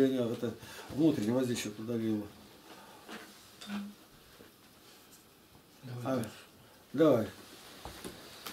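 An elderly man speaks calmly, in short phrases with pauses.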